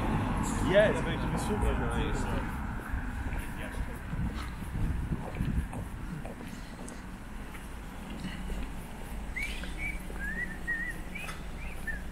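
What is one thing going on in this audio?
Footsteps shuffle along a pavement.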